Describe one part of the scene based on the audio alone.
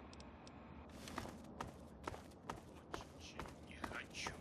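Footsteps crunch steadily on a gravel road.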